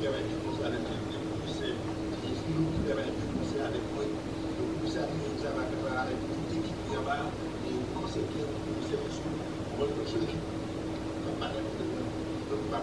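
A young man speaks calmly and closely into a microphone.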